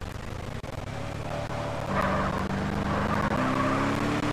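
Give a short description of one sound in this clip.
A car engine revs as the car accelerates.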